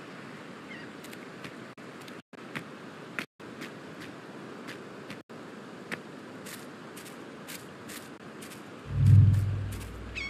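Footsteps crunch over dirt and grass.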